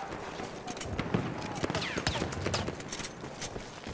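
Metal parts of a gun clack during a reload.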